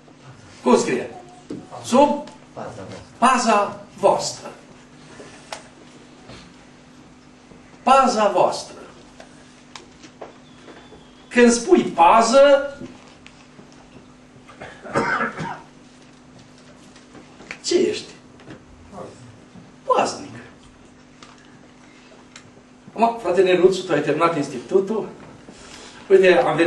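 An older man preaches with animation through a microphone, pausing often between phrases.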